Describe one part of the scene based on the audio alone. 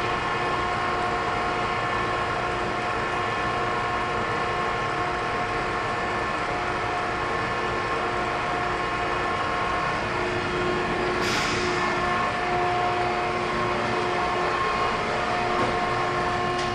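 Water sprays and splashes steadily.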